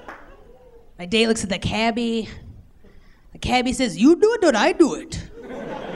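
A woman speaks animatedly into a microphone.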